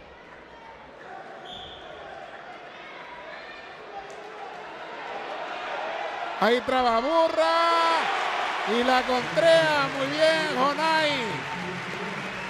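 A crowd cheers, growing louder.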